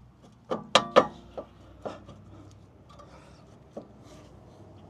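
A metal brake disc clanks and rattles against its hub.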